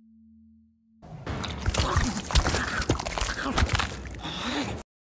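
Wet flesh squelches and tears loudly.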